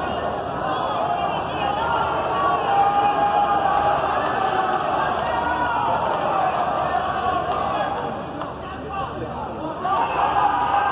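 A large crowd cheers and shouts throughout, echoing loudly in a big arena.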